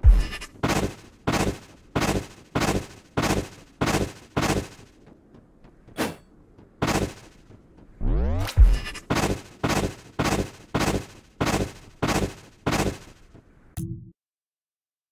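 Footsteps crunch steadily on sand at an even pace.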